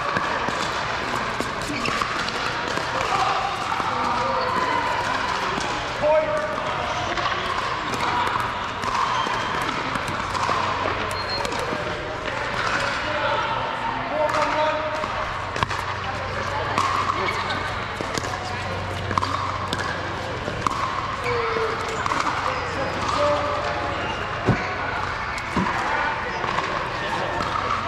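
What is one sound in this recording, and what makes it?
Men talk and call out across the courts in a large echoing hall.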